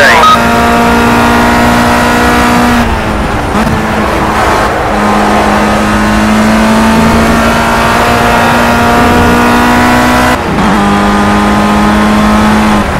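A racing car engine roars at high revs, dropping in pitch at each gear change.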